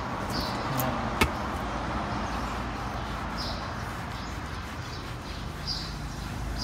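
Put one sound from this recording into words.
A cloth wipes and rubs across a leather surface.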